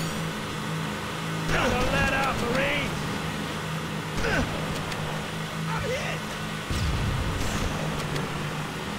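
Vehicle engines hum steadily.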